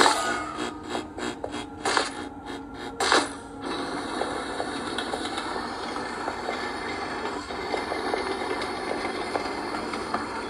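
A video game plays loud rumbling and clattering sound effects.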